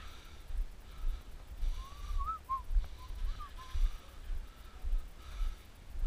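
Footsteps of a runner thud on asphalt.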